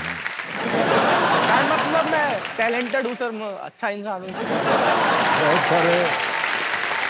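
An audience laughs and cheers.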